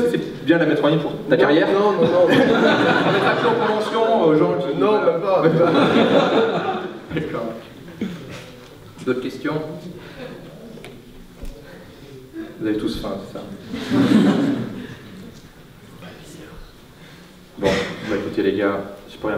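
A man speaks with animation into a microphone, heard through a loudspeaker in a large room.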